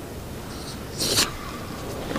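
A karate uniform snaps sharply with a fast strike.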